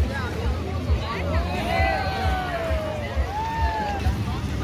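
A child shouts and squeals nearby.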